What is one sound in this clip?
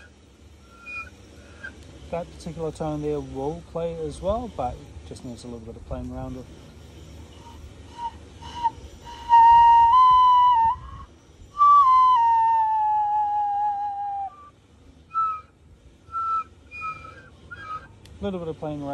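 A man blows a small whistle, making short high toots.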